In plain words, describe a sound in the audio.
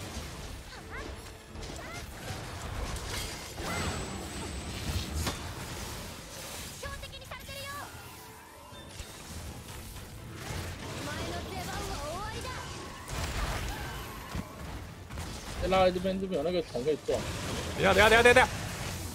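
Heavy thuds and rumbling booms sound.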